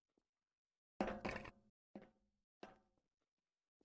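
Metal cans knock and clatter against a hard surface.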